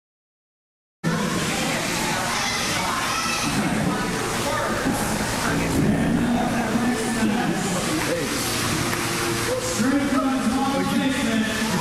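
A small crowd chatters and cheers in a large echoing hall.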